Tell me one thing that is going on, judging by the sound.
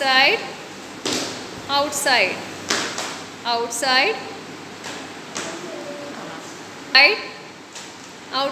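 Children's feet shuffle and stamp on a hard floor.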